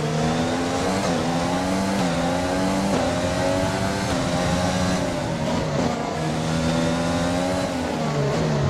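A racing car engine whines loudly at high revs, rising in pitch and dropping sharply with each gear change.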